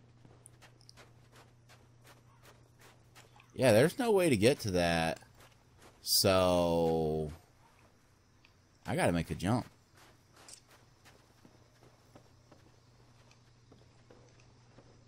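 Armored footsteps clank steadily on stone.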